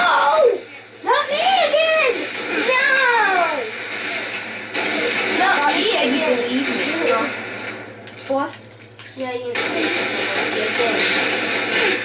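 Gunfire from a video game rings out in loud bursts.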